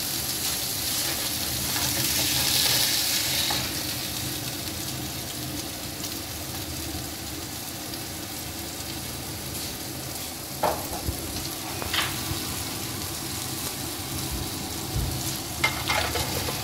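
A metal spatula scrapes and clicks against a pan.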